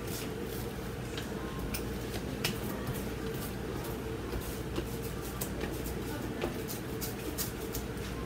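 A brush scrapes and taps against a stiff board.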